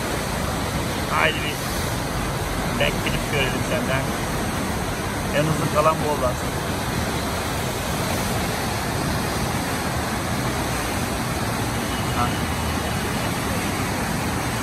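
Rushing river water roars steadily.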